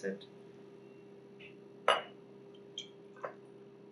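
Liquid pours and trickles into a glass bottle.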